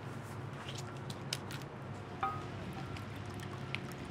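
Glass clinks against a bottle.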